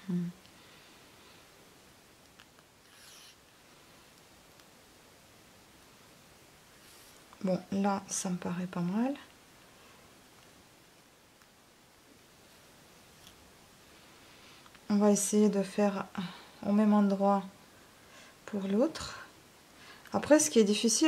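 Thread rustles softly as it is pulled through knitted wool.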